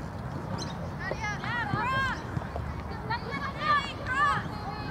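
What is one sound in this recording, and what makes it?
Young girls shout to each other across an open field.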